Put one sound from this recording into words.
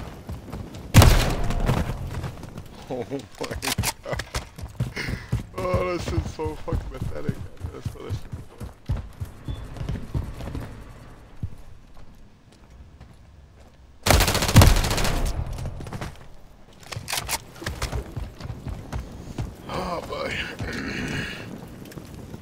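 Rapid gunfire rattles in sharp bursts.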